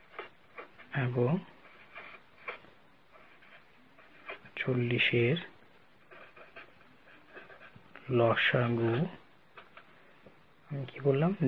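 A pen scratches on paper as it writes.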